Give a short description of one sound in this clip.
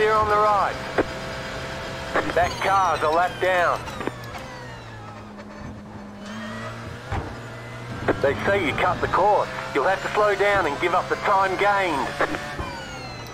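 A racing car engine revs up and down sharply with gear changes.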